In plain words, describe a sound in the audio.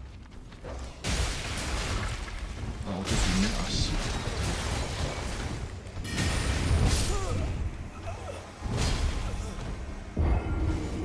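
Swords clash and strike in a fight.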